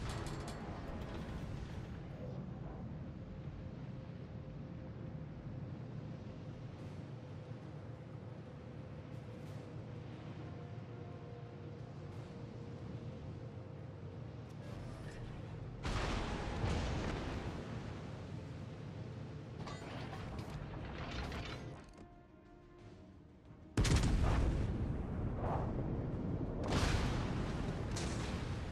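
A ship's engine rumbles low and steadily over the sea.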